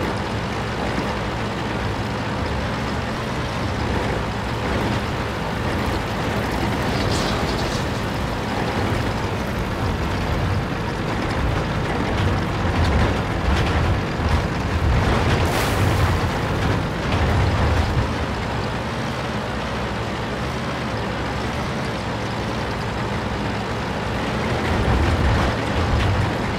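A heavy tank engine rumbles steadily.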